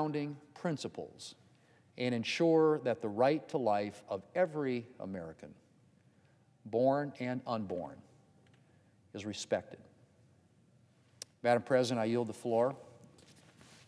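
A middle-aged man speaks calmly and formally into a microphone.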